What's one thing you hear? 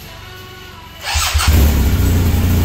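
A motorcycle engine starts up with a sharp roar.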